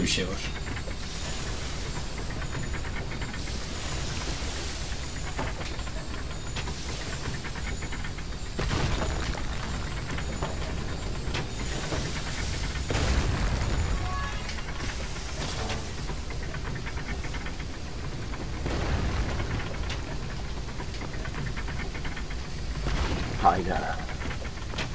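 Flames roar and hiss in repeated bursts.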